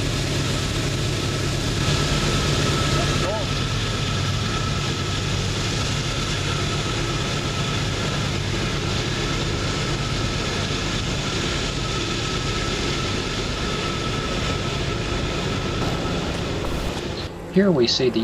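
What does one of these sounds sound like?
Diesel freight locomotives rumble as they move away along the track.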